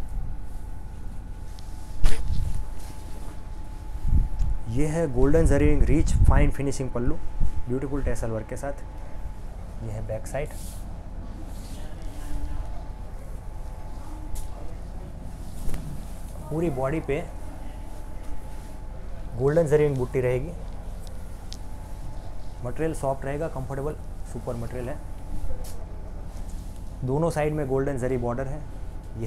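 Silk fabric rustles as it is unfolded and spread out.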